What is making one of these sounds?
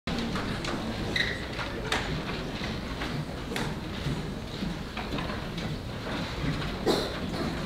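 Feet step and shuffle on a stage.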